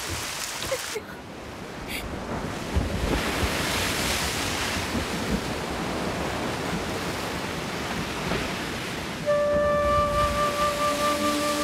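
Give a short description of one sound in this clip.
Sea waves crash and wash onto a beach.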